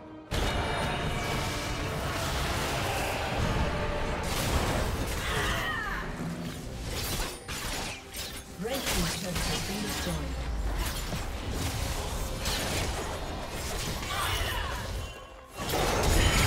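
Game spell effects whoosh and crackle.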